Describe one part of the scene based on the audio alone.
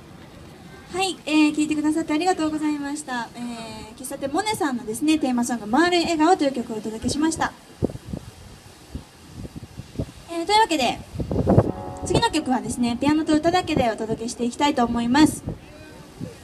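A young woman sings into a microphone through a loudspeaker.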